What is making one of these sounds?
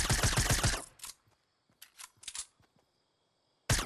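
A weapon is reloaded with metallic clicks.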